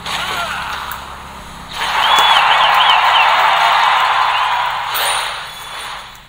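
Electronic game effects whoosh and clash during a battle.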